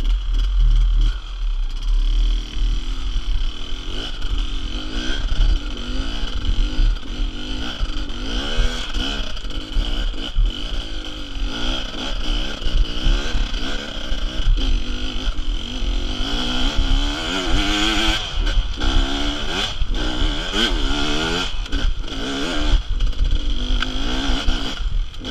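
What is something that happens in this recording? Loose stones crunch and clatter under the tyres.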